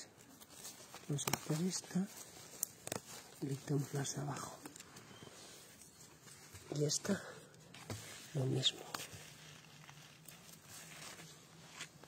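Dry plant leaves rustle under a hand.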